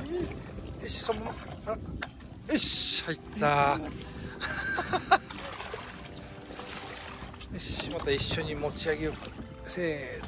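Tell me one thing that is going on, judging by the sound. A fish splashes and thrashes in the water beside a boat.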